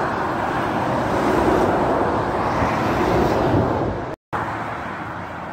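Steady traffic rushes along a motorway outdoors.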